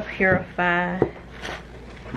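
A glass bottle is set down on a wooden surface with a light knock.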